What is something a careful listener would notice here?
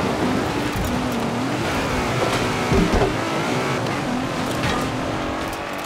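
Tyres slide and crunch over snow.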